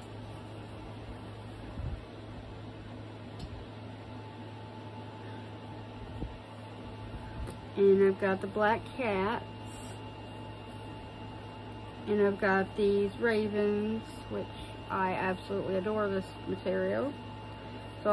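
Fabric rustles softly as hands handle it.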